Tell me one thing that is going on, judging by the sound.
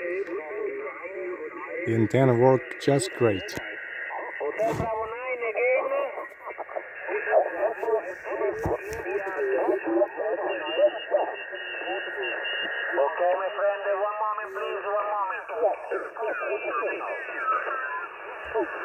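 Voices talk through a shortwave radio loudspeaker, thin and crackly.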